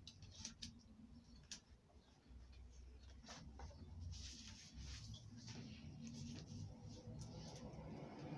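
Paper sheets rustle and slide as they are handled.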